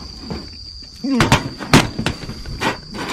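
A metal pot clatters and falls onto a metal table.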